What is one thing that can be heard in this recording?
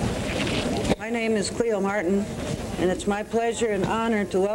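A man speaks over a microphone to an audience.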